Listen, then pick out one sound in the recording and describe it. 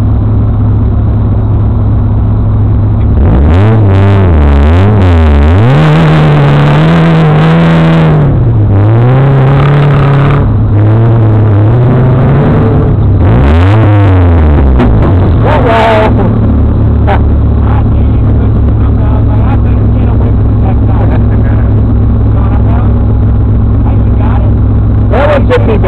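An engine idles close by with a deep, steady rumble.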